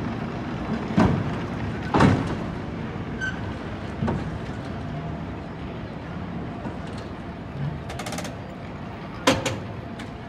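Metal clanks sharply as a cable car passes close by.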